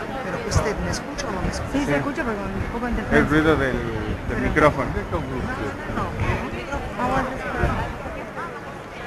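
A large crowd murmurs and chatters outdoors.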